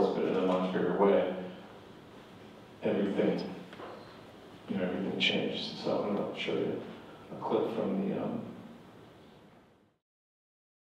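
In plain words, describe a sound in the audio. A middle-aged man speaks calmly into a microphone, his voice amplified over a loudspeaker.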